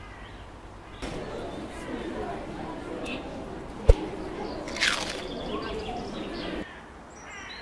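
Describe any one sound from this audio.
A crowd of children chatters and shouts in the distance.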